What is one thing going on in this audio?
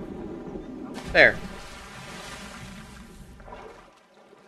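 Water splashes as a figure dives in.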